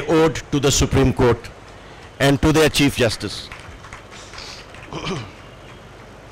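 A man speaks formally into a microphone over a loudspeaker in a large hall.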